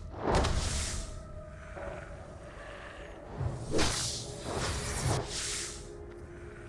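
A warrior's sword strikes a giant spider in a video game.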